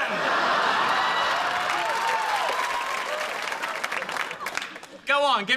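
A young man laughs heartily.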